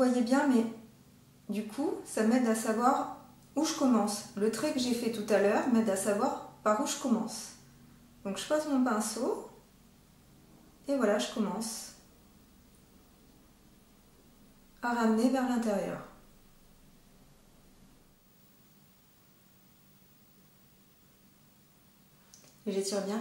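A young woman speaks calmly and close to a microphone, in short phrases with pauses.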